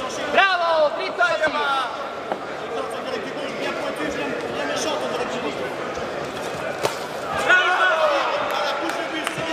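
Spectators shout loudly in bursts.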